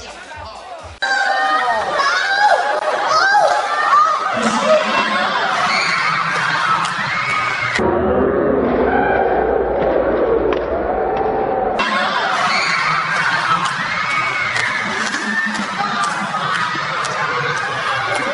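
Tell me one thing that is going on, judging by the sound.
A crowd of people cheers and shouts excitedly close by.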